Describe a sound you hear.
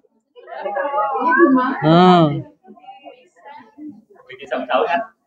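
Several adults talk nearby.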